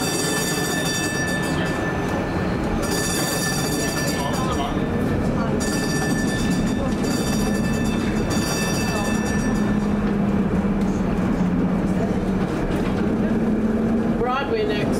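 A tram hums and rumbles steadily as it rolls along the rails.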